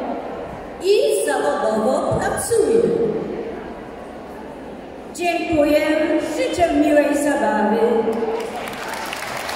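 An elderly woman sings through a loudspeaker in a large hall.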